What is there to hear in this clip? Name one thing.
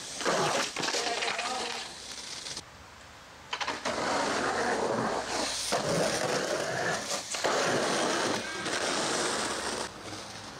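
Skateboard wheels roll and grind loudly over concrete.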